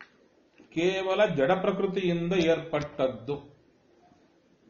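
A middle-aged man speaks calmly and clearly close by.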